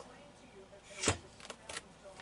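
A plastic lid clicks open.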